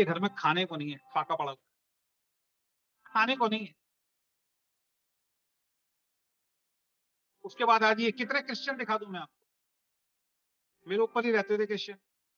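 A middle-aged man speaks with animation over an online call, in short bursts with pauses.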